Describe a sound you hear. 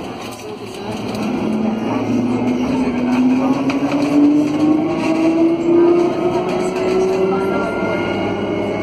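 A tram's electric motor whines, rising steadily in pitch as it speeds up.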